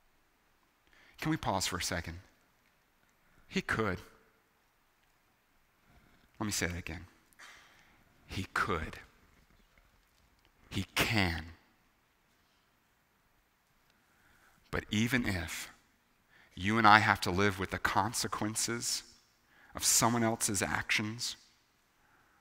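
A man speaks through a microphone in short phrases with long pauses.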